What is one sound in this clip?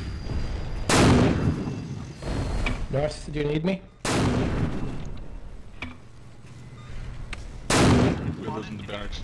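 A heavy launcher fires with a loud boom, three times.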